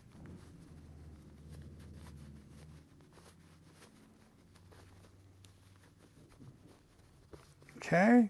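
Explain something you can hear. Fabric rustles softly between a man's hands.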